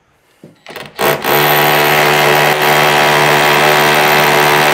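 A power drill whirs loudly and steadily as it bores into a wall.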